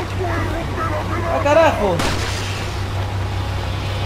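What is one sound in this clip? A pistol fires a single sharp shot.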